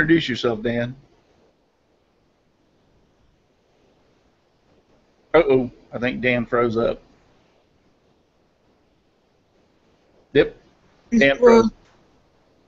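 An older man speaks calmly in short bursts over an online call.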